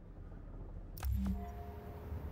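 An elevator door thuds shut.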